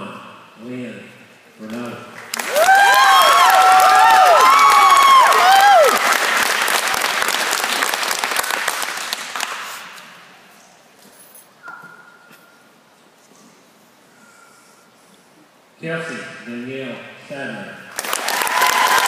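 A woman reads out names over a loudspeaker in a large echoing hall.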